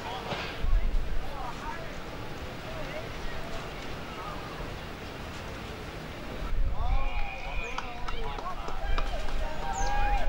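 Spectators shout and cheer from the sidelines outdoors.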